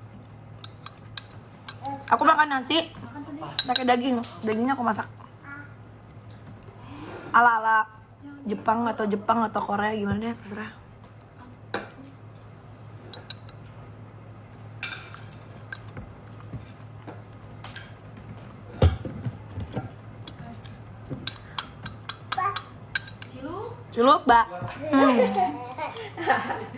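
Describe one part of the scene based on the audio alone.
Cutlery clinks and scrapes against a bowl.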